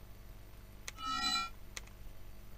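A short electronic chime sounds from a game.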